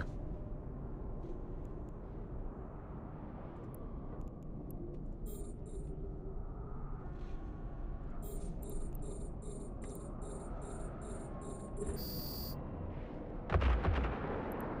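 A spaceship's engines rumble low.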